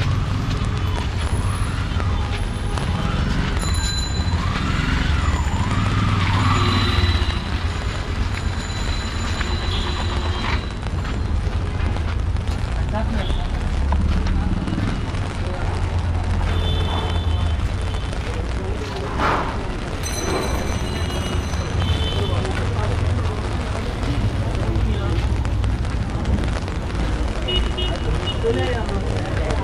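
Traffic rumbles steadily along a wet street outdoors.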